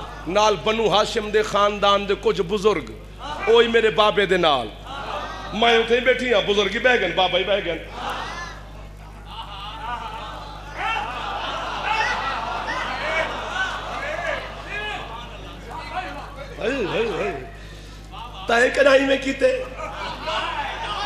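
A man recites loudly and passionately into a microphone, heard through loudspeakers in an echoing hall.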